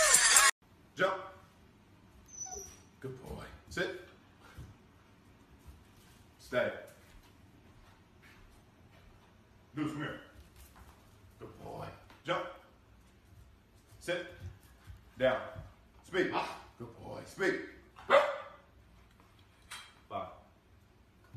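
A man gives short commands to a dog nearby.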